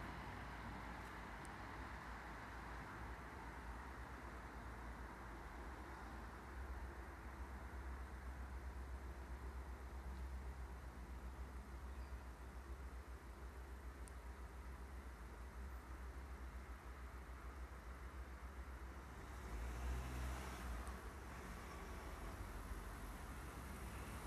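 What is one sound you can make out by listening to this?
Wind rumbles steadily outdoors.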